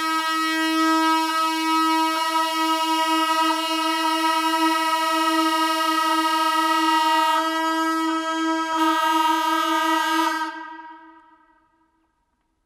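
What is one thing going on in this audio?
Wind instruments hold a long, steady note together in a large, resonant hall, then fade away.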